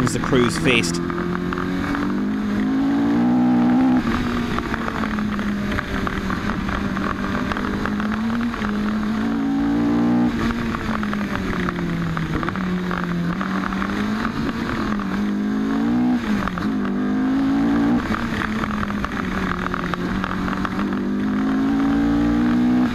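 Tyres rumble steadily on a tarmac road.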